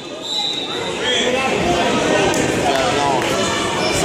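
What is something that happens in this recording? A man referee shouts calls.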